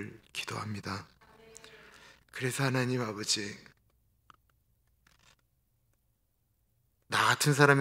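A middle-aged man speaks with feeling into a microphone, with pauses.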